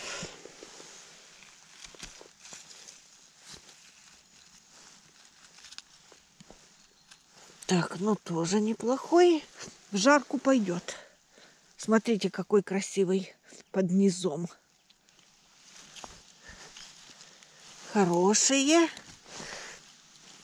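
Dry grass and leaves rustle under a hand.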